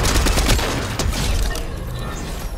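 Gunfire bursts loudly at the start.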